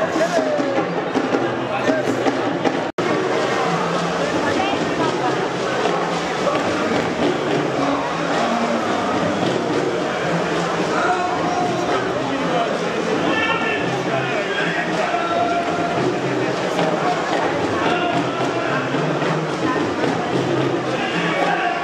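A crowd of adults chatters in a large, echoing hall.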